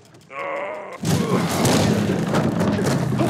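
A heavy wooden crate scrapes and crashes loudly.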